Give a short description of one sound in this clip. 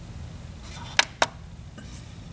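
A printer button clicks.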